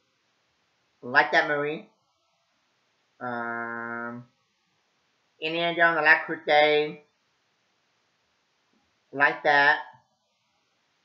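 A young man speaks in short, separate bursts close to a microphone, with pauses between them.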